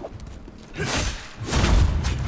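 A fiery blast bursts with a loud whoosh.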